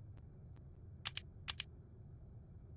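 Short sharp clicks sound as a game menu opens.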